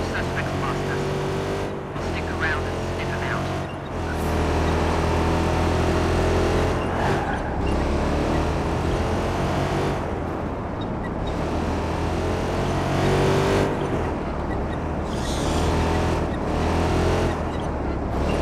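A car engine roars and revs as it speeds along.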